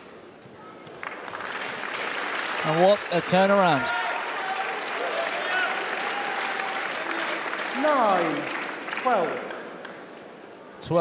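A large crowd cheers and applauds in an echoing hall.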